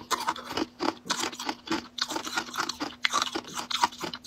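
A young woman bites into jelly with a crisp snap.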